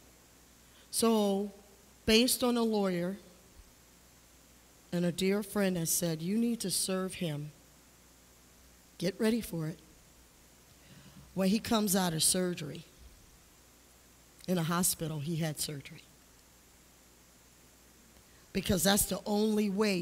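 A woman speaks through a microphone in phrases with pauses, echoing in a large hall.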